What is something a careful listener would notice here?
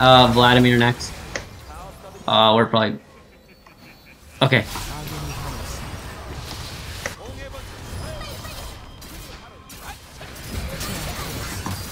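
Fantasy combat effects whoosh, crackle and thud.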